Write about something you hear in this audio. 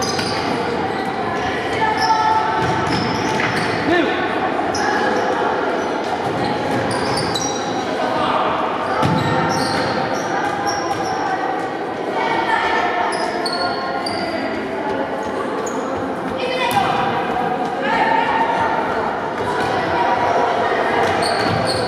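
Young boys shout and call out across a large echoing hall.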